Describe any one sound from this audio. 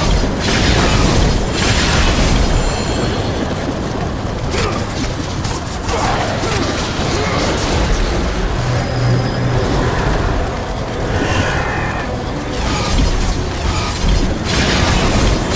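Fiery blasts burst with a roar.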